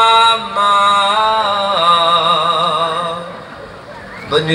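A woman sings through loudspeakers.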